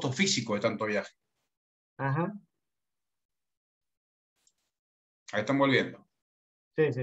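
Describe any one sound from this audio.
A young man talks calmly over an online call.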